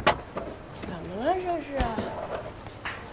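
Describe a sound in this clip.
A young woman asks a question in a surprised voice.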